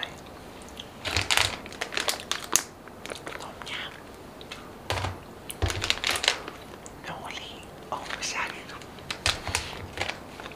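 A plastic snack bag crinkles.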